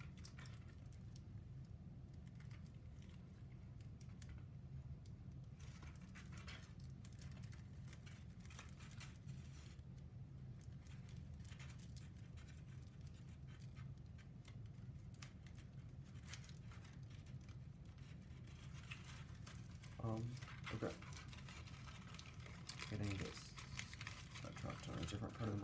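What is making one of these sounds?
Thin wooden pieces click and rustle between fingers.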